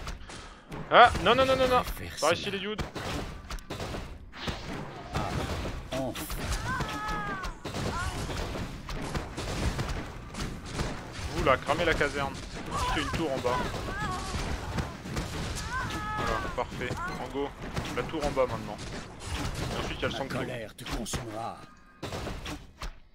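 Weapons clash and spells crackle in a game battle.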